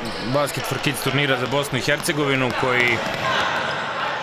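A basketball bounces on a hard court in an echoing hall.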